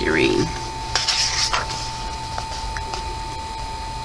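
A page of a book is turned with a papery rustle.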